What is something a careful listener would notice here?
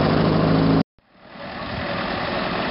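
A truck's engine runs as it drives through mud.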